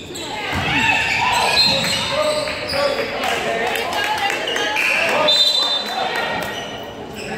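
Basketball shoes squeak sharply on a hard court in a large echoing gym.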